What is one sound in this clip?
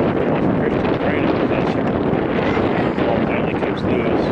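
Young men call out to each other in the distance across an open field.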